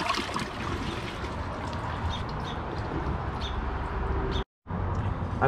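Water swirls and gurgles down a toilet bowl as it flushes.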